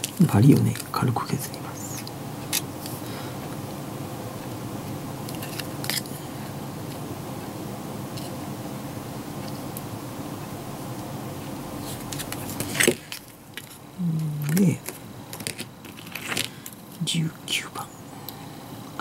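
Small plastic parts click and tap on a table.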